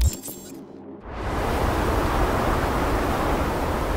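A strong wind roars steadily.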